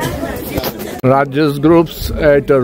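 A group of adult men and women talk loudly close by.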